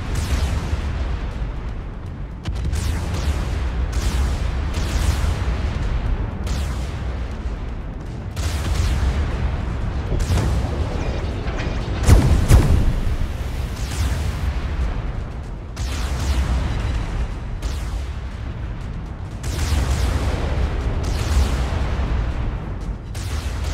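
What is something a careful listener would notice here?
Heavy naval guns fire in booming salvos, one after another.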